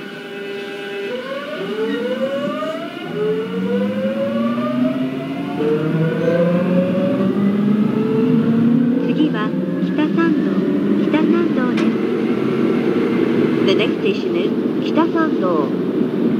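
Train wheels rumble and clack over rail joints in a tunnel.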